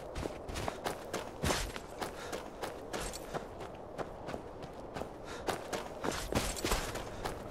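Footsteps crunch over snow and rocky ground at a steady walking pace.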